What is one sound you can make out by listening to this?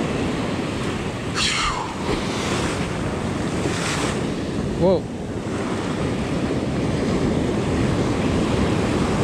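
Waves break and wash up onto the shore close by.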